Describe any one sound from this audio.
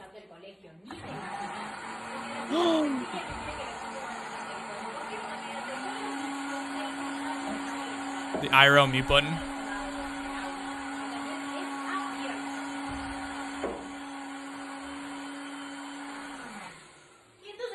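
A blender whirs steadily.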